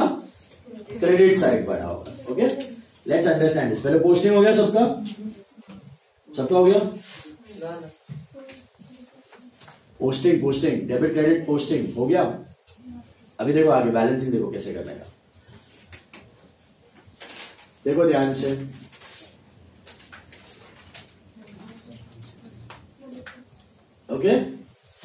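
A man speaks calmly and clearly in a small room, pausing often.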